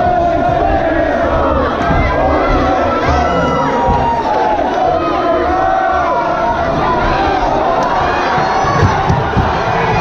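A crowd shouts and cheers loudly.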